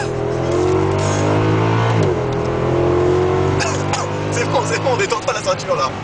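A car engine revs hard from inside the car, rising in pitch, dropping briefly at a gear change, then climbing again.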